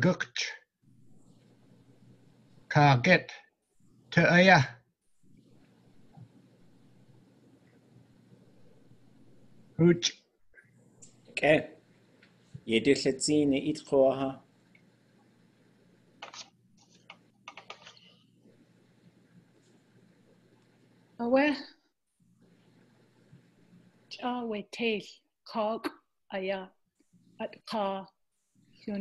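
A man speaks slowly over an online call, reading out in short phrases with pauses.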